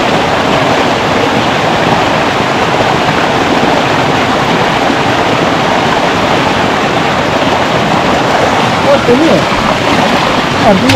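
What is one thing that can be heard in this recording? A stream rushes steadily over rocks close by.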